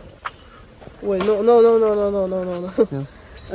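A boy speaks close by in a long drawn-out voice.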